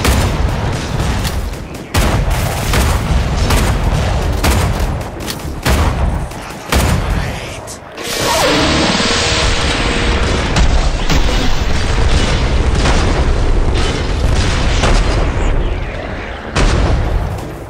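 Rifle shots boom with a sharp crack.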